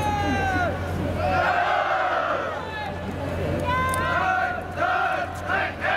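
Many feet march in step on pavement.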